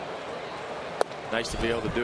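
A pitched ball smacks into a catcher's mitt.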